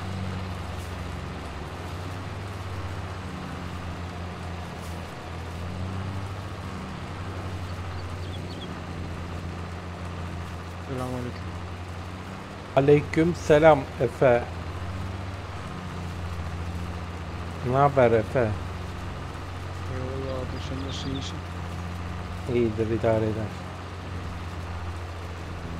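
A tractor engine hums steadily at a low pitch.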